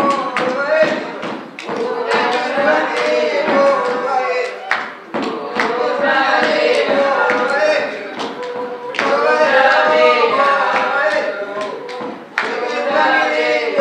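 Women clap their hands to the rhythm.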